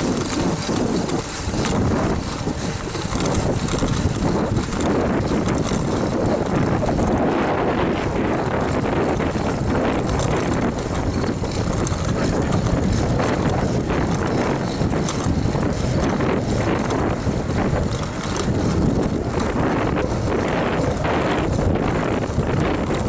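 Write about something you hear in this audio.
Road bike tyres hum on asphalt.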